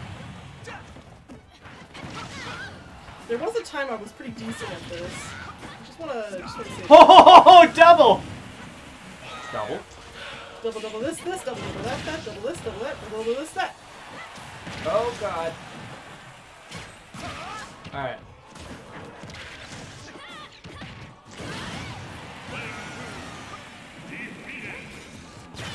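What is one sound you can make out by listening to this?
Punches, slashes and energy blasts clash in quick bursts.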